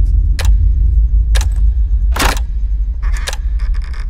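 A door handle turns and clicks.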